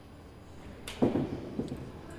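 A racket strikes a ball with a sharp echoing crack.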